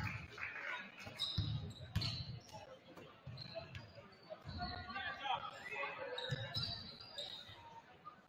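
A basketball bounces on a court in a large echoing gym.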